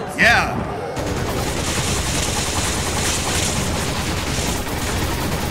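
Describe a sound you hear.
Gunshots fire rapidly over and over.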